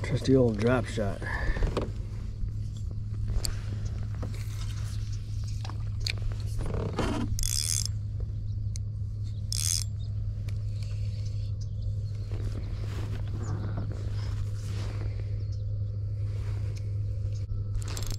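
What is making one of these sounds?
A spinning reel winds in fishing line.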